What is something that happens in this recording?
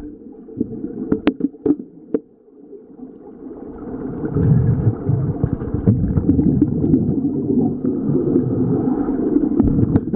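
Air bubbles gurgle and rumble loudly underwater in bursts.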